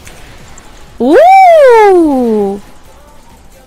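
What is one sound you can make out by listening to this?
A young woman lets out a long, loud, rising and falling squeal.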